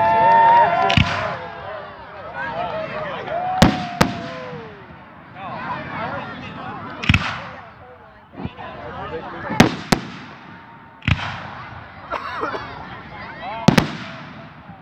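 Fireworks explode with loud, sharp bangs, one after another.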